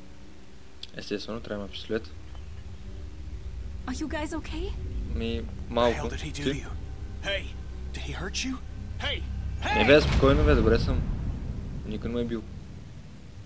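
A young man talks nearby into a microphone.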